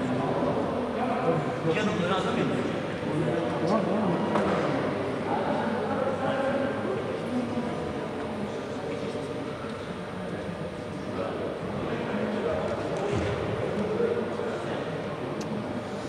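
Several young women talk among themselves in the background.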